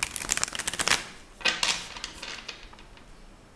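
Playing cards riffle and flutter as they are shuffled by hand.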